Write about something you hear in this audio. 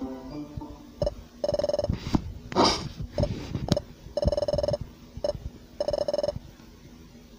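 Rapid electronic blips chirp in short bursts.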